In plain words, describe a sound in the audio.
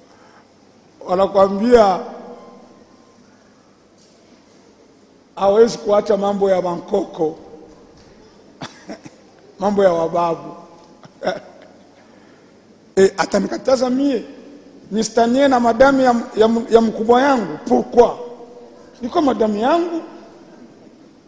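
A man chants in drawn-out phrases, with pauses between them.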